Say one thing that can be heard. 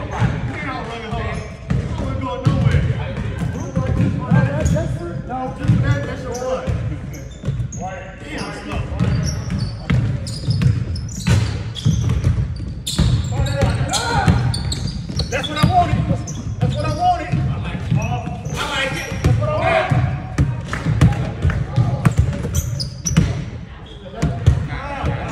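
Young men talk and call out to each other across the gym.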